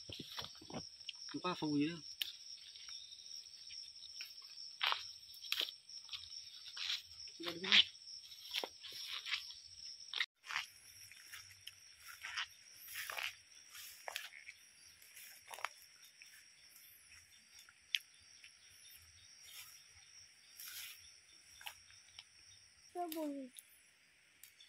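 Leafy plants rustle and swish as someone walks and picks through undergrowth.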